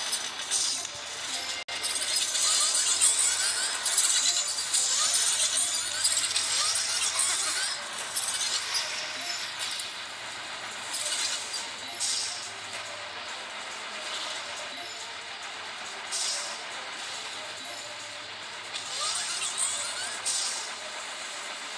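Electric zaps crackle from a game tower.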